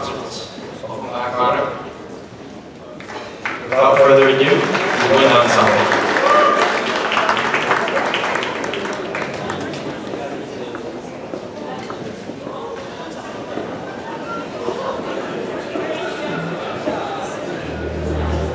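A large band plays in a big echoing hall.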